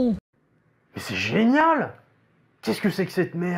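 A young man speaks calmly to the listener.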